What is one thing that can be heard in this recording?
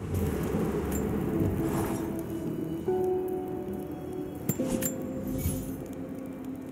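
A wood campfire crackles.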